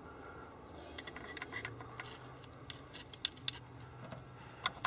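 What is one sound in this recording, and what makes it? A metal tool scrapes and clicks against a metal part.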